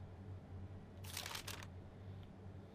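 A soft swishing interface sound plays as a map opens.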